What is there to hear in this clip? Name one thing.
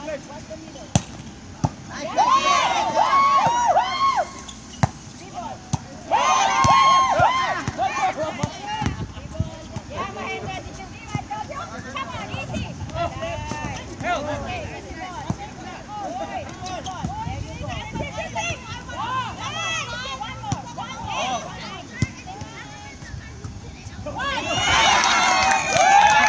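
A volleyball is struck with sharp slaps, now and then.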